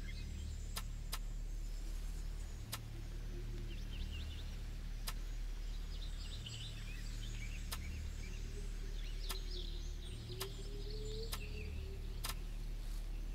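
Soft menu clicks tick now and then as a selection moves.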